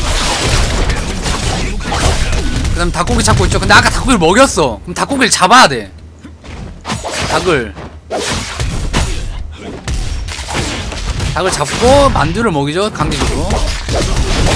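Game sword strikes and magic effects clash and whoosh.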